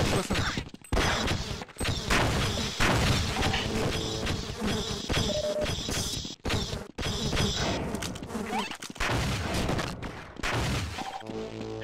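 A heavy gun fires repeatedly in loud bursts.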